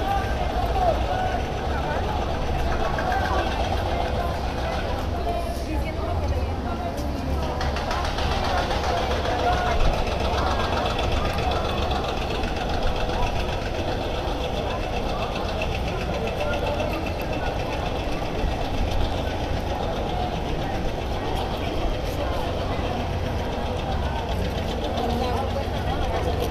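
A crowd of people chatters at a distance outdoors.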